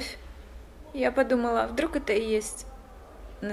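A second woman answers in an upset voice.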